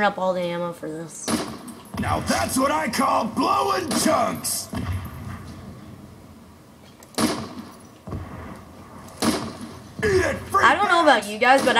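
Gunshots fire in quick bursts, echoing down a long hall.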